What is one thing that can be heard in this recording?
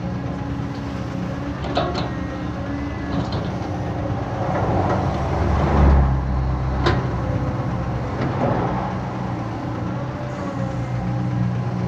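An excavator's diesel engine rumbles and revs steadily outdoors.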